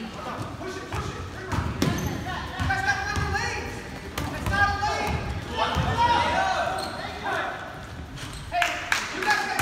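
Young players shout and call out to one another.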